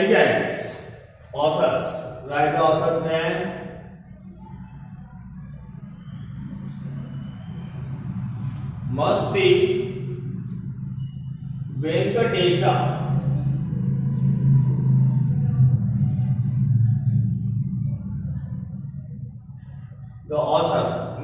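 A man speaks loudly and clearly in short bursts.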